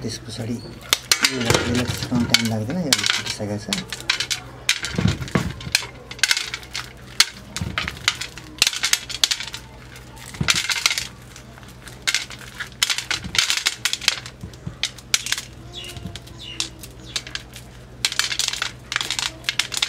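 Corn kernels patter and rattle into a metal pan.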